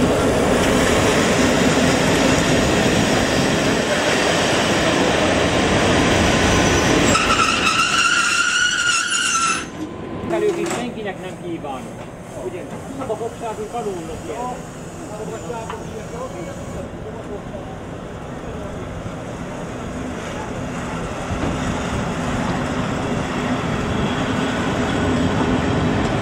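Train carriages rumble and clatter past on the rails.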